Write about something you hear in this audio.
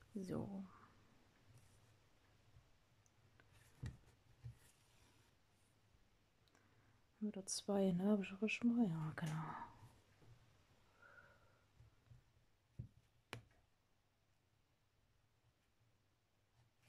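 A needle and thread rasp softly as they are pulled through cloth.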